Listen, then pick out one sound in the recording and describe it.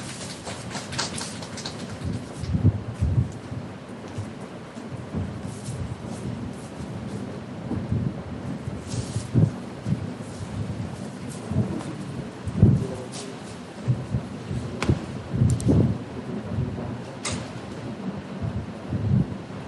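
A man speaks through a microphone in a room with a slight echo.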